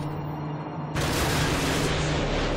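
A missile roars as it flies.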